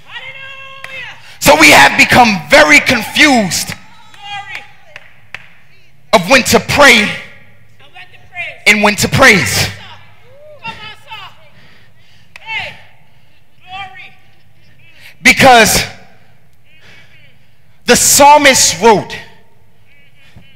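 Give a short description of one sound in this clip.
A man preaches passionately through a headset microphone, in bursts with long pauses, in a large echoing hall.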